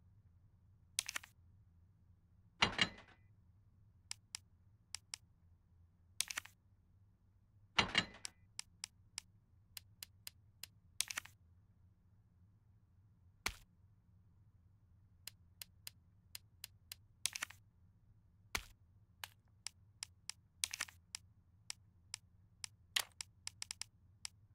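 Game menu sounds click and chime as items are moved.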